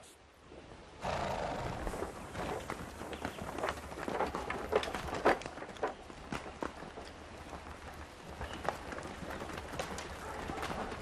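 Horses' hooves thud and trample on soft ground.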